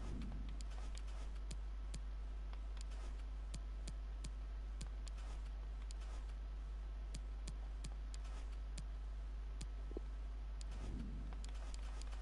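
Short menu clicks tick again and again.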